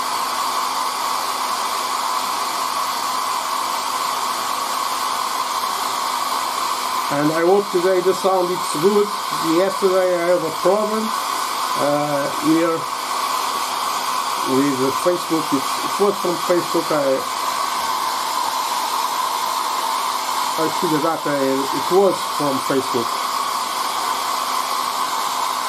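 A hair dryer blows with a steady whirring hum.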